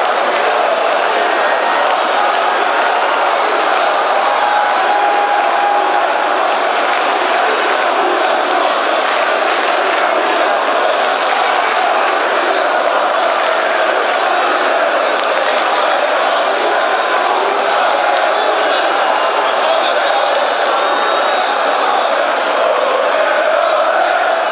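A huge crowd cheers and chants loudly in a large echoing stadium.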